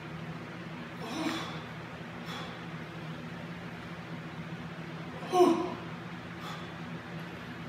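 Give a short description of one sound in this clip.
A man grunts and exhales sharply with effort, close by.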